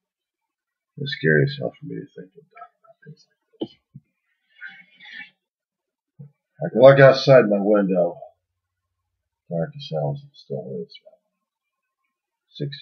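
A middle-aged man speaks calmly and close to the microphone, in short bursts with pauses.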